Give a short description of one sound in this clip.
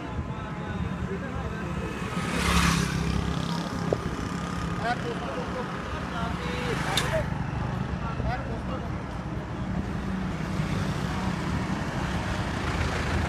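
Traffic hums along a street outdoors.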